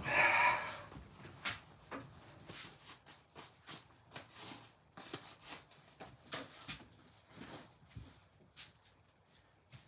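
Metal pieces clink and rattle as they are handled.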